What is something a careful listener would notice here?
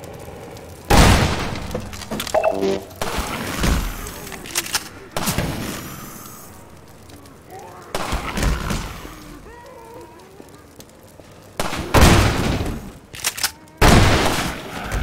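A shotgun fires loudly several times.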